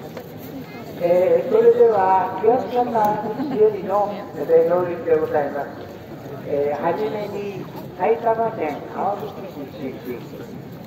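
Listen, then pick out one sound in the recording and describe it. A man chants loudly in a long, drawn-out singing voice outdoors.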